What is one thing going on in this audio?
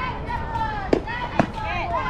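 A bat cracks against a softball.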